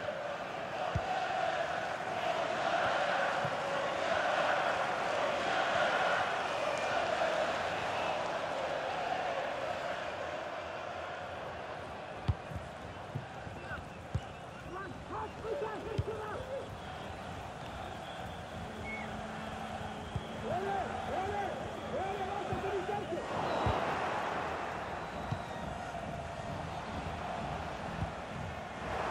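A football is kicked with sharp thuds now and then.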